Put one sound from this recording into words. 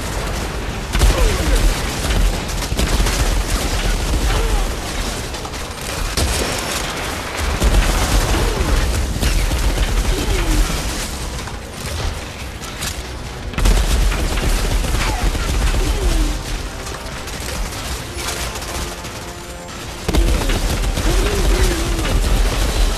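Monsters growl and snarl close by.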